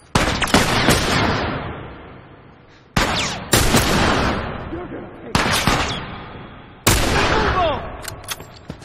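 A rifle fires loud, echoing shots.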